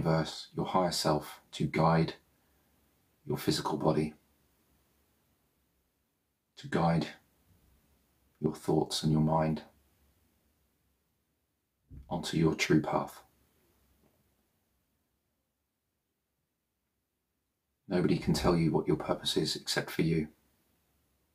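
A man speaks calmly and softly into a nearby microphone, with long pauses.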